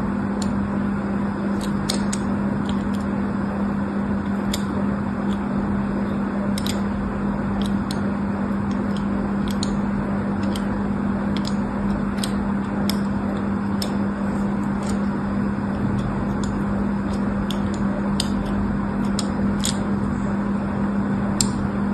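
A small blade scrapes and crackles through a bar of soap up close.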